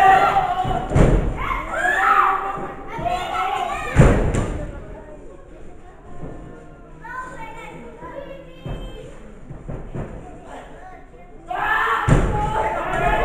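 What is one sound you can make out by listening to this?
Bodies thud heavily onto a wrestling ring's canvas.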